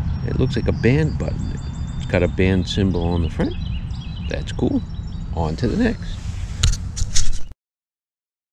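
An older man talks calmly, close to the microphone.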